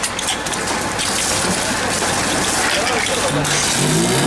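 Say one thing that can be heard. Water splashes onto the ground.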